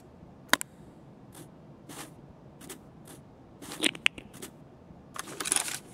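Metal gear clicks and rattles as a rifle is handled.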